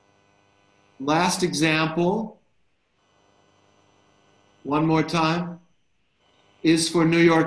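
A middle-aged man speaks calmly into a microphone in short phrases.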